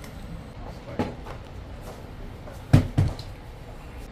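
A tray is set down on a table with a thud.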